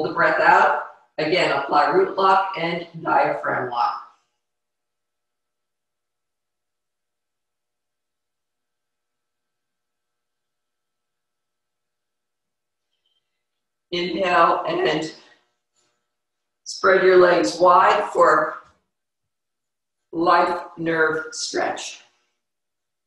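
An older woman speaks calmly and slowly, close to a microphone, with long pauses.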